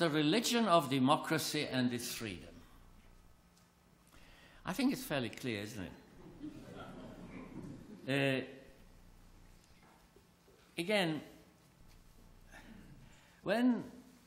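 An elderly man speaks slowly and earnestly through a microphone in an echoing hall.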